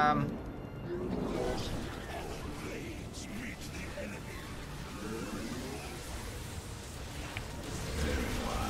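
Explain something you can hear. A young man talks steadily and with animation close to a microphone.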